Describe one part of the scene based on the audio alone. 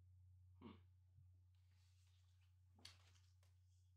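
Plastic game pieces tap down on a board.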